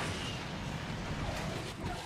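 Cars crash together with a metallic bang.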